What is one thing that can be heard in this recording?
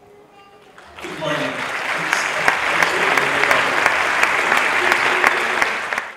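An audience claps loudly in a large echoing hall.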